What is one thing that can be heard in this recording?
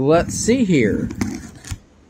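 A knife blade slices through packing tape on a cardboard box.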